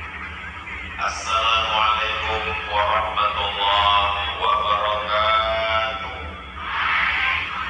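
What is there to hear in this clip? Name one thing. A man chants through a loudspeaker in a large open space.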